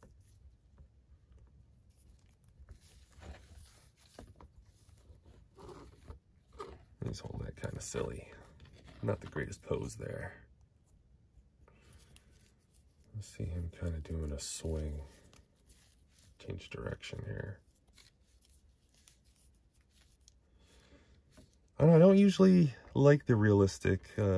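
Small plastic joints click softly as hands bend and pose a toy figure.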